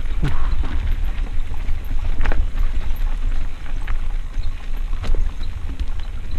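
Mountain bike tyres rattle and crunch down a dirt singletrack.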